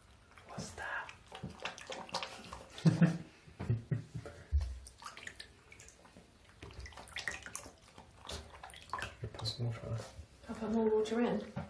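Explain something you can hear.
A puppy's paws splash in shallow water.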